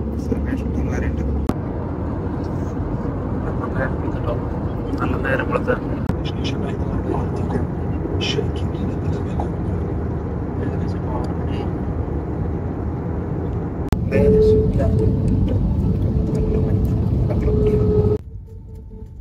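A plane's engines roar steadily.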